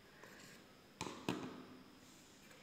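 A plastic lid clacks as it is set against a bowl.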